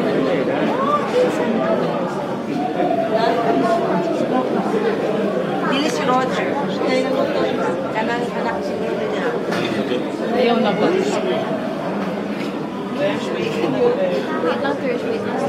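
A crowd of men and women murmur and talk nearby in an echoing room.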